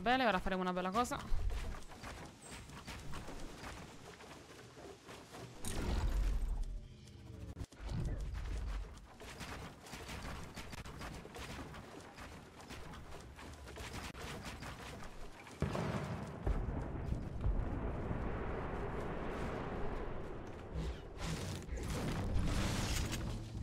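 Wooden walls and ramps snap into place with quick knocks in a game.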